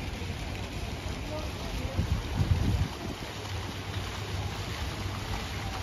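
A fountain splashes water.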